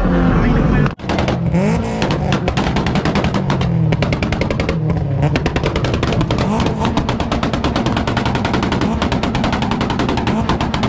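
A car engine idles and revs nearby outdoors.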